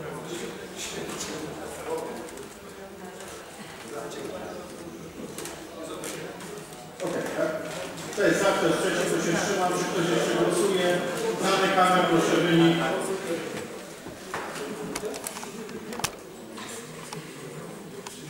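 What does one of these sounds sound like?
People murmur and talk quietly in a large echoing hall.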